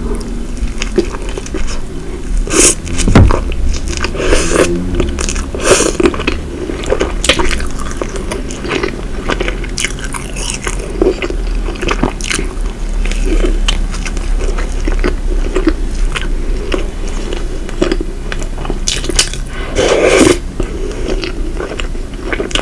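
A woman chews noisily with wet, smacking mouth sounds close to a microphone.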